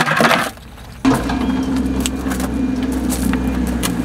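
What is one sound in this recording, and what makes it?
Stones clatter as they drop into a bucket.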